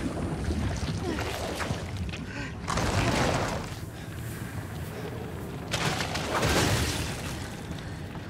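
A huge creature roars and rumbles loudly.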